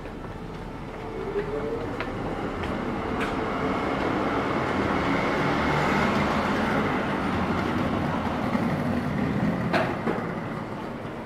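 A tram rolls past nearby.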